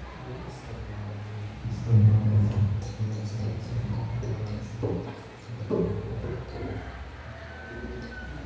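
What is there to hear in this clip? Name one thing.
A young man speaks steadily into a microphone through loudspeakers in an echoing hall.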